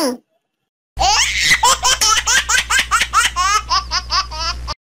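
A high, squeaky voice laughs loudly in quick bursts.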